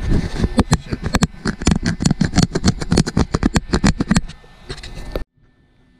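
A hand rubs and knocks against the microphone.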